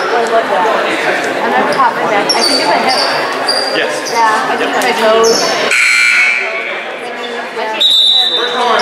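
A group of young men talk and shout over each other in a large echoing gym.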